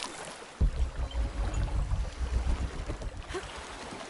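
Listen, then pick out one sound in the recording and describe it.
Water splashes heavily as something wades through it.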